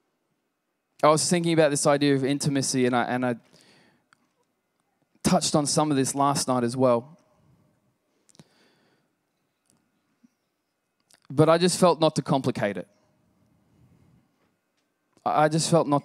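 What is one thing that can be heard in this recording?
A man speaks calmly into a microphone in bursts, with pauses between phrases.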